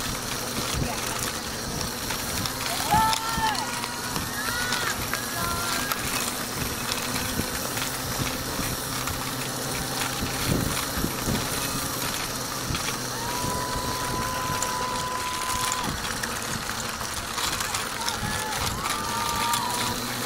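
A runner's footsteps patter on a dirt path.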